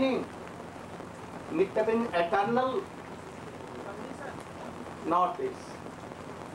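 An elderly man speaks slowly and calmly into a microphone, heard through a loudspeaker system.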